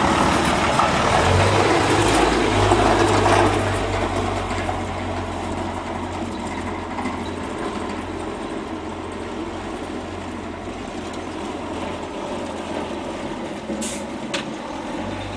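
Tyres roll on tarmac.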